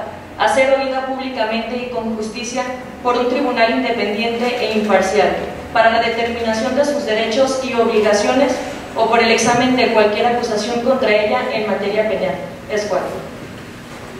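A young woman speaks calmly into a microphone, heard through loudspeakers in a large room.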